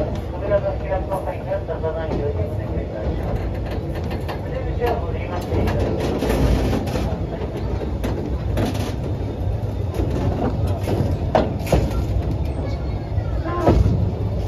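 Couplings between train cars clank and knock sharply.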